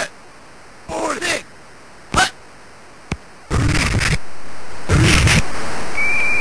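Electronic game sounds play in short, harsh bursts.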